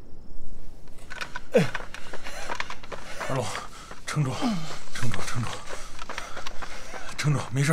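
Footsteps hurry along a dirt path.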